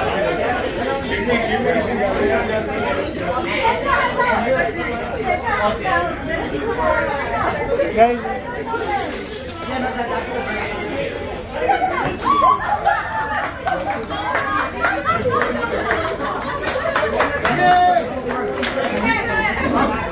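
A crowd of men and women chatter and cheer around a dance floor.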